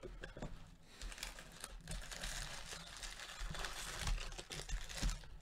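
Foil card packs rustle as fingers shuffle them.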